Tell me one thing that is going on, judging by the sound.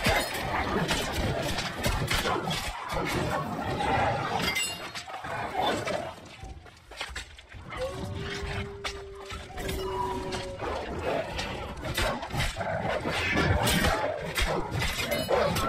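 Heavy weapon blows strike creatures in a game fight.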